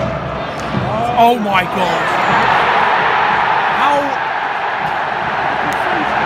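A large stadium crowd roars and chants steadily, echoing around the stands.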